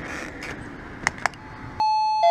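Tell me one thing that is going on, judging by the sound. A doorbell button clicks as a finger presses it.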